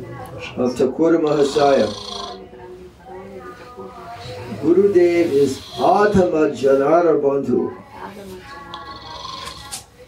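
An elderly man speaks slowly and expressively, close by.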